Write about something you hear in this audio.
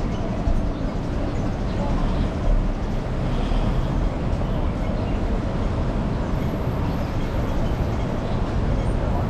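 Steady, rumbling city traffic noise surrounds the listener outdoors.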